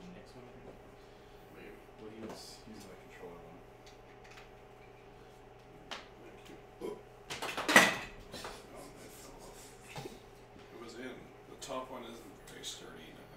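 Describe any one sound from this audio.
Young men talk and laugh casually in a room, heard through a microphone.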